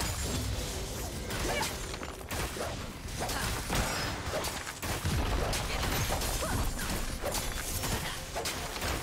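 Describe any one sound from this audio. Magic blasts and weapon hits crackle and thud in a busy battle.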